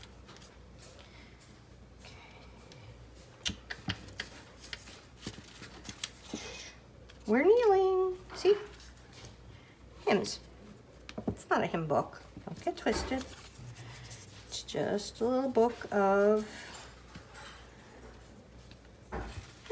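A brush dabs and scrapes glue onto paper.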